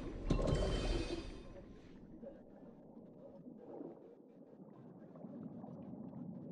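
A character swims with soft underwater whooshing.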